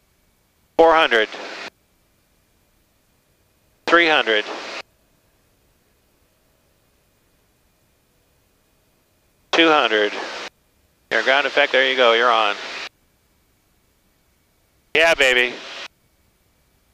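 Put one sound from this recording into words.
A man speaks calmly in short bursts over a headset intercom.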